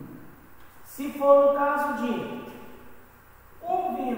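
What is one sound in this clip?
A man speaks loudly and clearly nearby.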